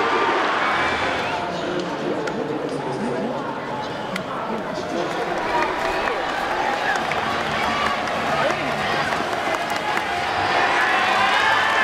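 Young men talk close by in a noisy stadium.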